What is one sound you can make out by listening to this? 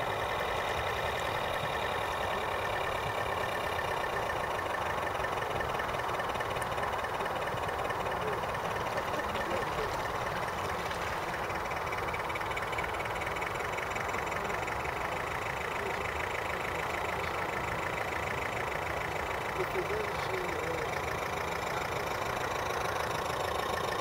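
A small model boat motor whirs steadily with a high whine.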